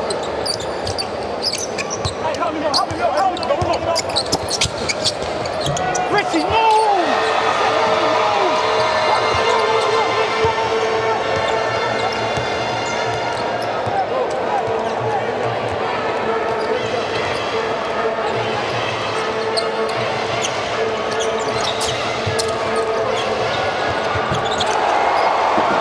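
A crowd murmurs steadily in a large echoing arena.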